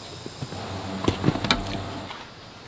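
Loose soil pours and thuds into a wooden form.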